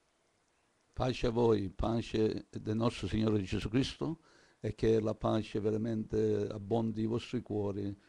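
An elderly man speaks calmly and close into a microphone.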